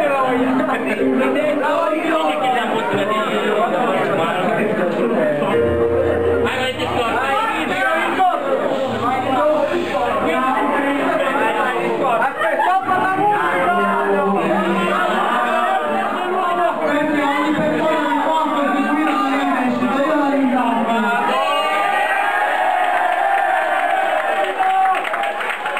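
A crowd of young men and women chatter and talk over one another nearby.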